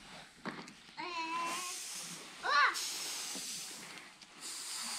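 Grain pours from a bucket onto a sheet with a soft, steady hiss.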